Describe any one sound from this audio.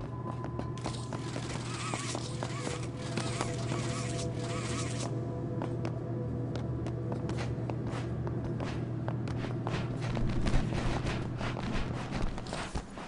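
A train carriage rumbles with a steady low hum.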